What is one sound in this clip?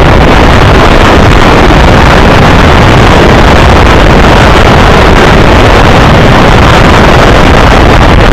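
Wheels clatter rapidly over the rail joints.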